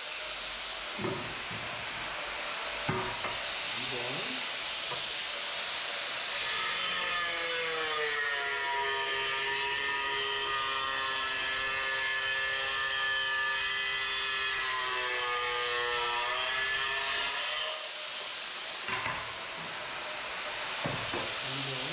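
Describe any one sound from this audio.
A ceramic tile knocks against a hard floor.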